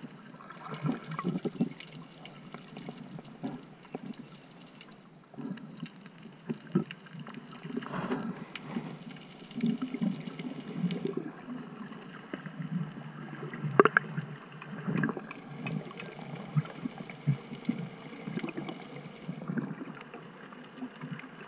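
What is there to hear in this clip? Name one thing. Water swirls and thumps, heard muffled from underwater.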